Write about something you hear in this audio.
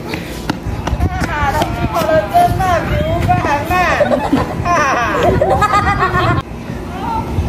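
Young boys talk with animation close by.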